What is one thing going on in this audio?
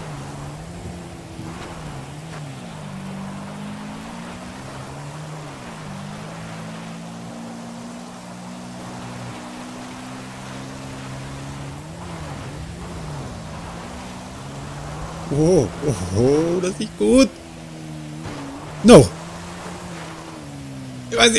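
A motorbike engine hums steadily, rising and falling in pitch.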